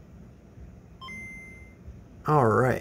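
A handheld game console plays a short two-note startup chime.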